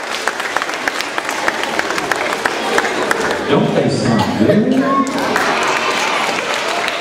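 An audience claps and applauds in a large echoing room.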